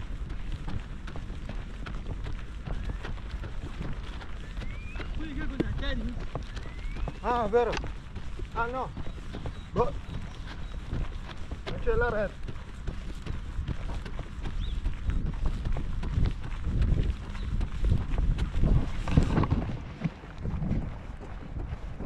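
Running footsteps thud on grass.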